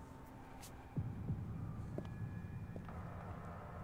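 Footsteps tread slowly on pavement.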